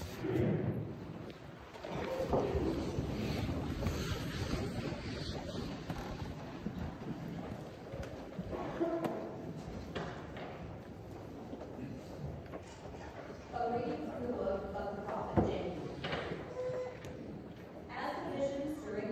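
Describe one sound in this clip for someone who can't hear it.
Men and women murmur and talk quietly in a large echoing hall.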